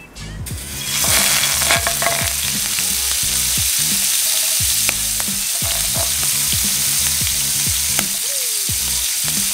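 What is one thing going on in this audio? Water simmers and hisses softly in a pan.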